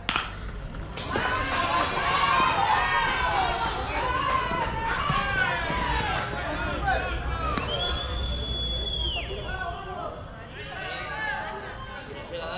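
Players shout and cheer with excitement outdoors.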